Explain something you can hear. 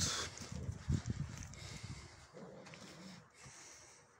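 A horse tears and munches grass.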